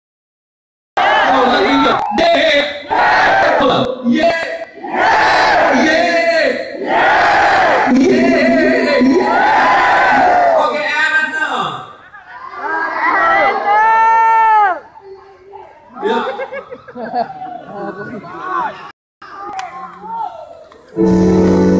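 A man sings loudly through loudspeakers.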